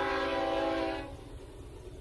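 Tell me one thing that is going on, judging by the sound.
A train horn blows loudly from a distance, then cuts off.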